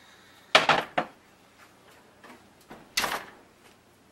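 A metal pan clatters against a stovetop.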